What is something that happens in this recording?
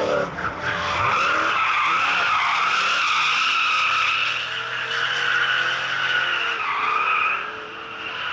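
Tyres squeal loudly as a car slides.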